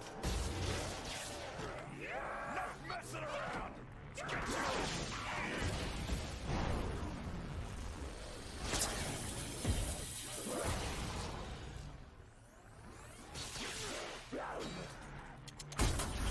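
Monsters growl and screech close by.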